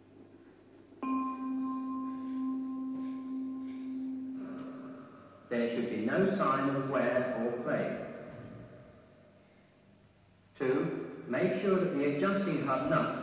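An electronic keyboard plays sustained tones and shifting chords.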